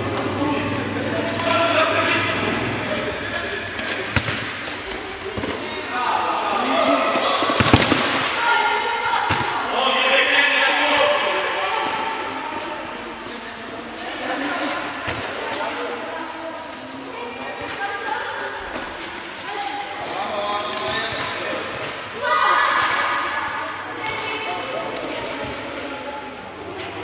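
A ball is kicked and thuds on the floor.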